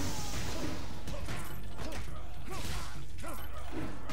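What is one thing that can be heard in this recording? A soft whoosh sounds as a cloud of smoke bursts out.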